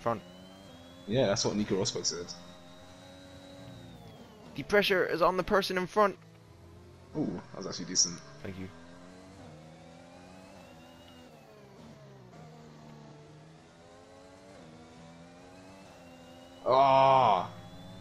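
A racing car engine whines steadily, rising and falling in pitch as it shifts gears.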